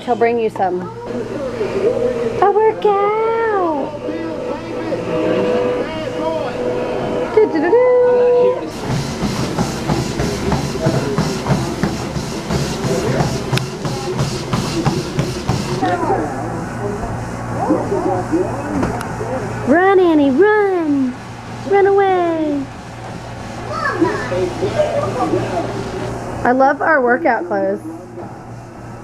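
Young girls talk and squeal excitedly close by.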